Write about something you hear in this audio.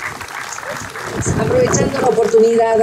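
A small group of people clap their hands.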